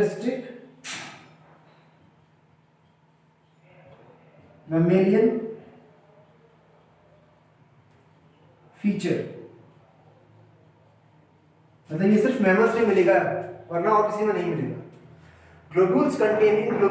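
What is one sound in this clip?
A man speaks in a lecturing tone, close by.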